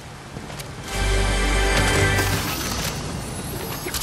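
A treasure chest bursts open with a bright, shimmering chime.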